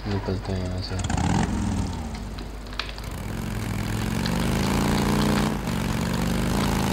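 A motorcycle engine revs and roars as it rides off.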